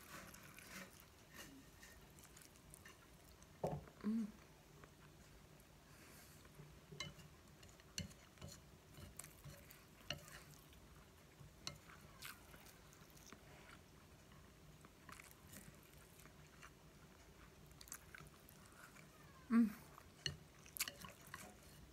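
A woman chews food close to a microphone with moist smacking sounds.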